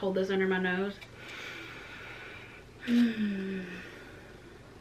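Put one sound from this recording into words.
A woman blows short notes on a small wind instrument up close.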